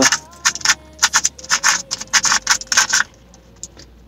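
A puzzle cube clicks rapidly as its sides are turned.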